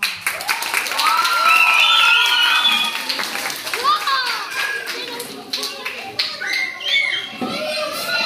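Children cheer and shout excitedly in an echoing hall.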